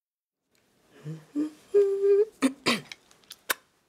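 A woman hums a short tune with animation.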